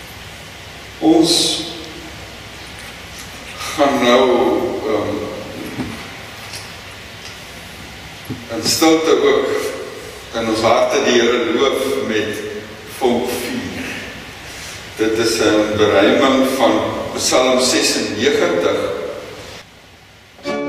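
An elderly man speaks calmly through a microphone in an echoing hall.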